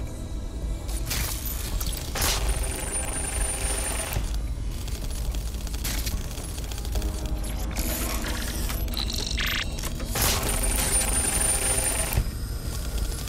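A small robot's metal legs clatter and tap as it scuttles along.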